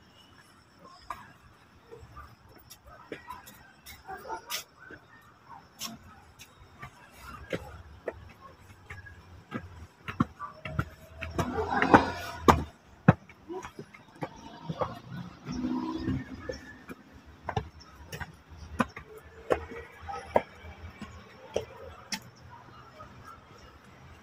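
Footsteps scuff and tap on concrete steps outdoors.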